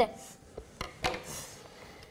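A young boy speaks briefly.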